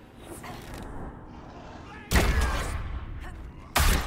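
A magic blast bursts with a deep boom.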